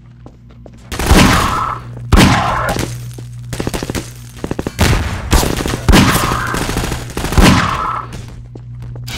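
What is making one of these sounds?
A revolver fires loud, echoing shots.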